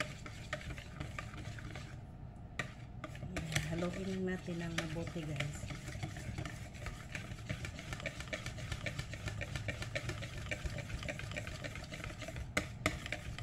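A wire whisk clicks rapidly against a bowl, beating batter.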